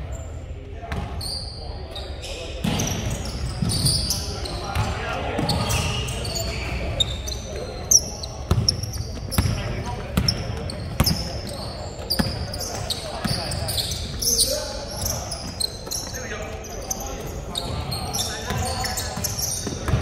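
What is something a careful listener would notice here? Sneakers squeak sharply on a hard court, echoing in a large hall.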